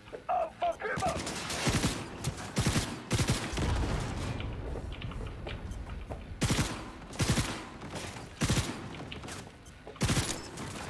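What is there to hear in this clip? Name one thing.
Gunfire rings out in quick bursts.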